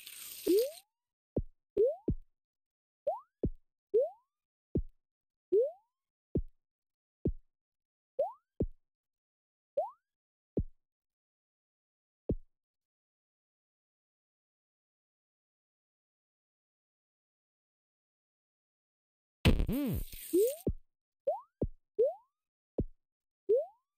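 A short rising electronic blip sounds each time a game character jumps.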